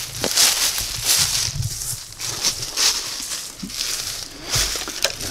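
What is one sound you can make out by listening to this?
Boots crunch through dry leaves.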